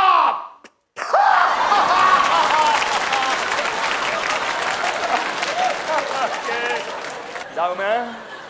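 An audience laughs loudly and claps in a large hall.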